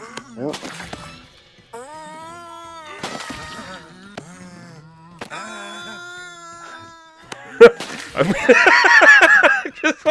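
A small cartoon explosion bursts with a pop.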